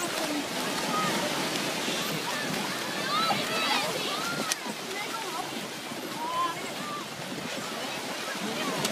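People shout and call out in the distance.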